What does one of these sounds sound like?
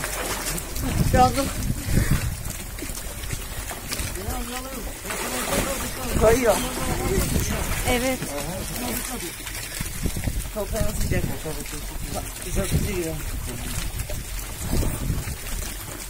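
A young man talks and laughs with animation close by.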